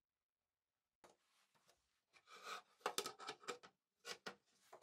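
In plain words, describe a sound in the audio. A board knocks and scrapes as it is lifted and set on a wooden surface.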